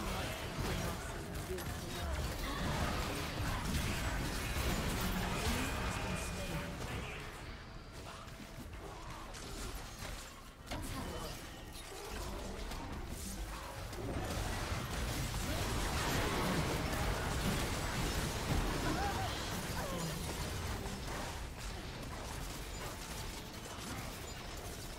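Spell blasts and sword hits clash in a busy fantasy battle.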